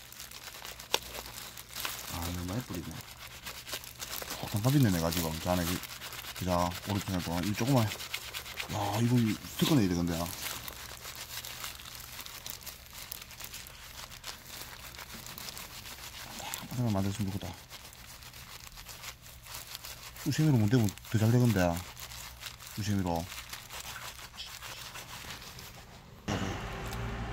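A cloth rubs and squelches against soapy metal.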